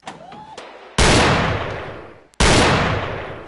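A pistol fires two loud shots that ring out.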